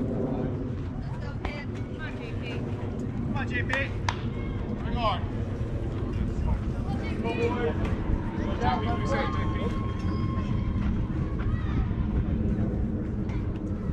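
Children call out faintly across an open field.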